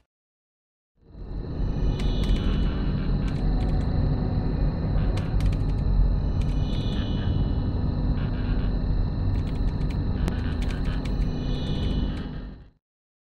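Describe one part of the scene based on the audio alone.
Machinery hums low and steadily.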